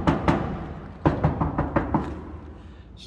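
A hand taps on a car's metal body panel.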